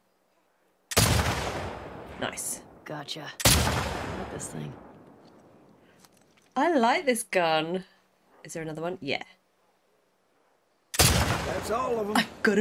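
Sniper rifle shots boom and echo.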